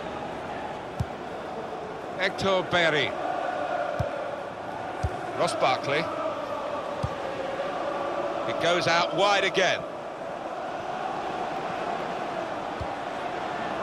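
A football is kicked with short, dull thuds.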